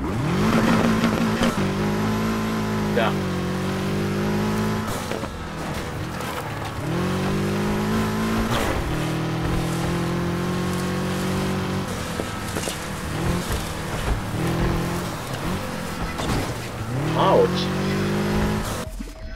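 A car engine roars and revs up through the gears.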